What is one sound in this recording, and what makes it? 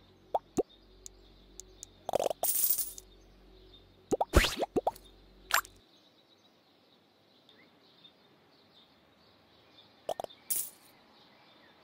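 Short game menu clicks and pops sound as buttons are tapped.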